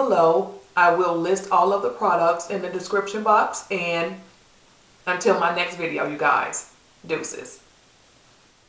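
A woman talks with animation, close to a microphone.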